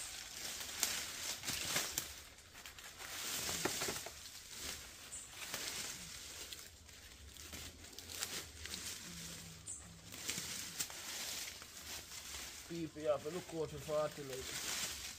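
A machete chops and swishes through leafy undergrowth.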